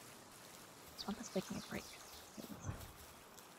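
Footsteps patter over dirt and grass.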